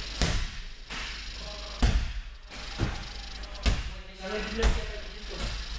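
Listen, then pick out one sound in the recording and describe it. Bodies thud heavily onto a mat in an echoing hall.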